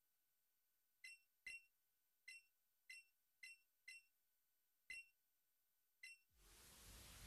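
Short electronic chimes sound as game dialogue advances.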